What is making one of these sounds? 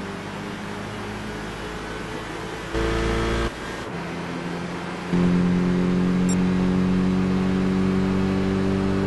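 A racing car engine roars at high revs and shifts up through the gears.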